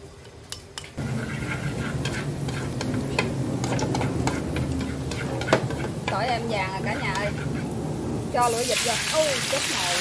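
Garlic sizzles in hot oil in a wok.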